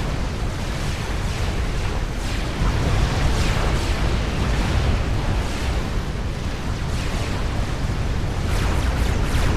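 Explosions boom and rumble in a steady battle din.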